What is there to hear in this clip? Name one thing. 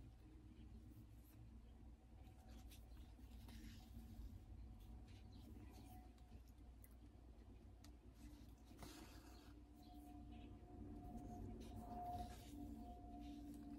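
Thread is pulled through fabric with a soft rasp.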